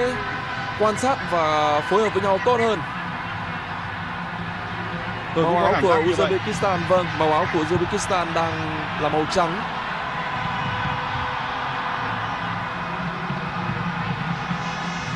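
A large crowd murmurs and roars steadily in an open stadium.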